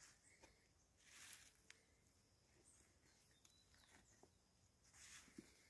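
Soil crumbles softly as a plant is lifted from the ground.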